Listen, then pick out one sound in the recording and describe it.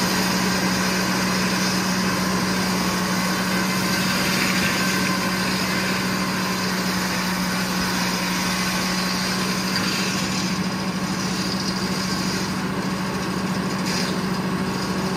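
A large saw blade cuts through a log with a harsh whine.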